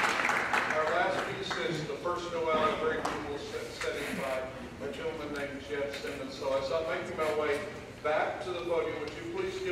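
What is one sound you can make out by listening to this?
An older man speaks calmly into a microphone, heard over loudspeakers in a large hall.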